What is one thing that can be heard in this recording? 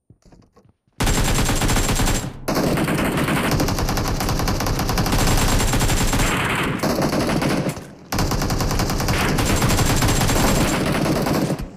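An automatic rifle fires rapid bursts of shots.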